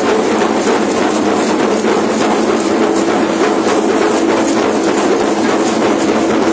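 Rattles on dancers' ankles shake in a fast, steady rhythm.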